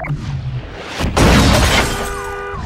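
A car crashes with a loud smash of metal and glass.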